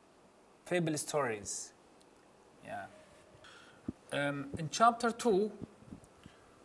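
A man speaks calmly and clearly into a microphone, with short pauses.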